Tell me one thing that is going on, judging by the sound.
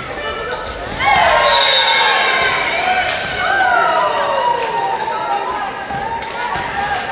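Young women shout and cheer together.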